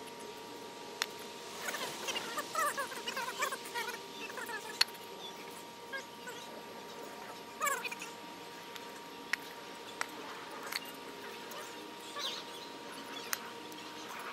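Bricks clack and knock together as they are set down.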